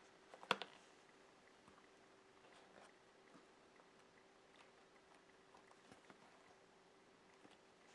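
Hands press a rubber stamp onto paper with soft rustles.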